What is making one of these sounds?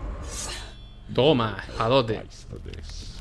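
A glowing sword hums and whooshes loudly.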